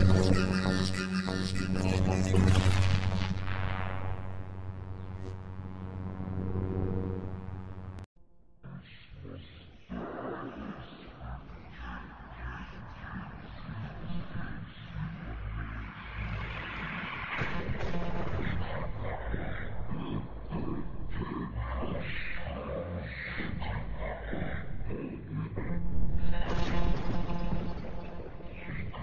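Many cartoonish voices sing the same song at once, some sped up high and some slowed down low.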